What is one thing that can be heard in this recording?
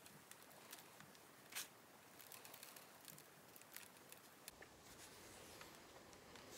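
Hands rub together with a soft dry scratching.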